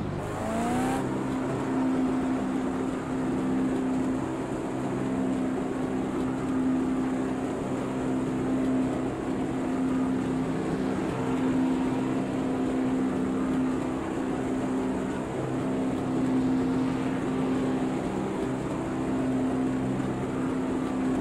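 A racing car engine drones steadily at a constant speed.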